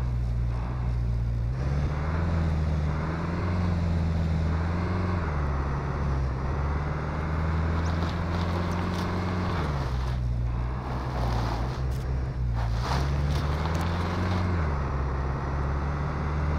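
Tyres rumble over a rough road.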